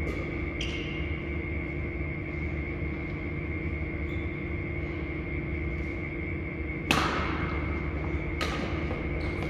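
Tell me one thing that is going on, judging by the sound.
A shuttlecock is struck with a racket, echoing in a large hall.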